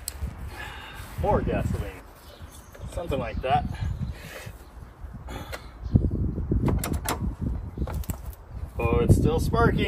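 A man talks casually outdoors.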